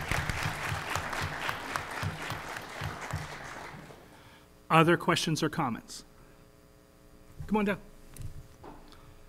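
A man speaks calmly into a microphone in a large hall.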